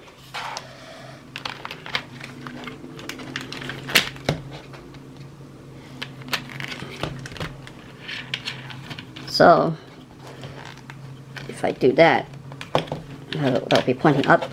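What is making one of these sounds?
Plastic parts click and rattle as a mount is fitted onto a hard helmet.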